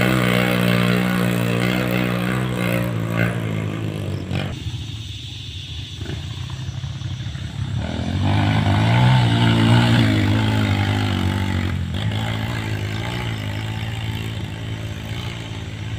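A dirt bike engine revs and roars as it climbs, rising and falling in pitch.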